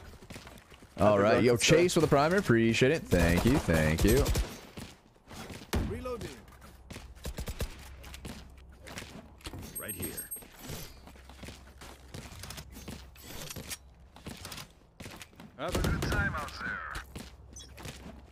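A young man talks into a close microphone, with animation, in bursts.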